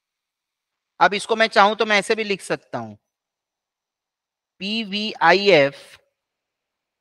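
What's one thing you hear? A man speaks calmly and clearly through a microphone, in short bursts.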